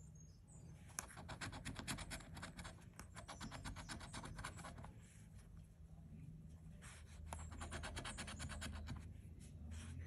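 A coin scratches rapidly across a scratch-off ticket.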